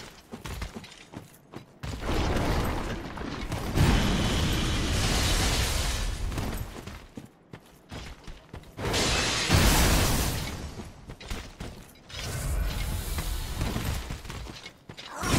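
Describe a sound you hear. Ice crystals burst and shatter with a loud crackling roar.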